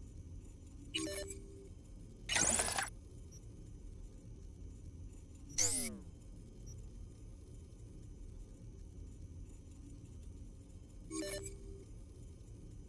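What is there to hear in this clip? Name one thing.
Short electronic menu beeps sound now and then.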